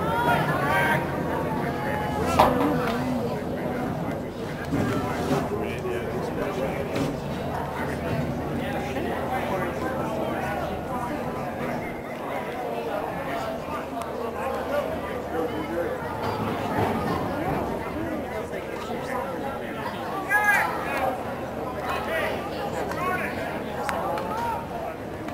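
Young men shout to each other across an open field at a distance.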